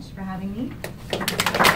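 A young woman speaks into a microphone in a large room.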